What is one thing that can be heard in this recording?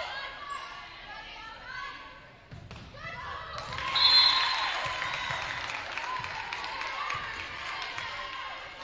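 Young women players shout and call out to each other.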